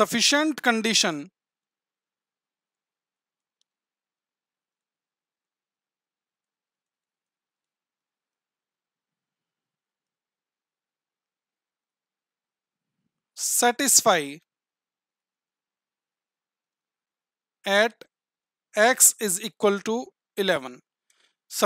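A man speaks calmly into a close microphone, with long pauses.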